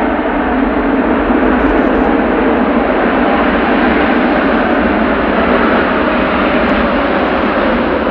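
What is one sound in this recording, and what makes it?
A jet plane's engines roar loudly and steadily.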